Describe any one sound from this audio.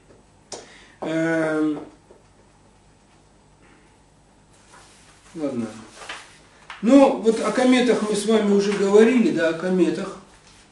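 A man speaks in a low voice, close by, in short bursts.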